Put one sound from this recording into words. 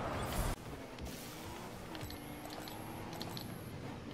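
A car engine roars as a car speeds along.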